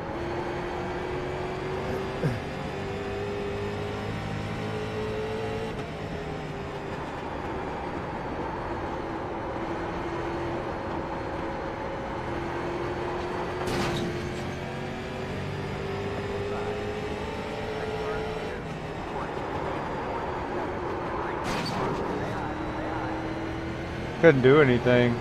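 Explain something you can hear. A race car engine drones steadily, rising and falling in pitch as the car speeds around the track.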